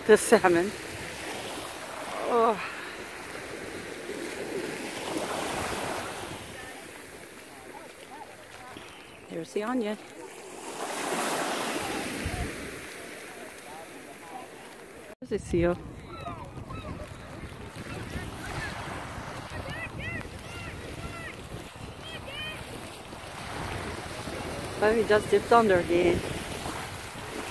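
Wind blows across open water.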